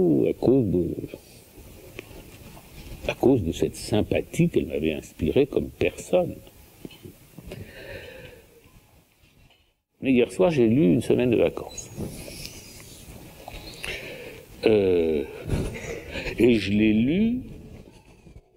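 An elderly man speaks calmly and thoughtfully into a nearby microphone.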